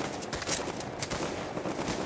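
An explosion bursts with scattering debris.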